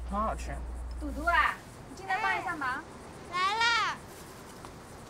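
A woman calls out loudly from a short distance.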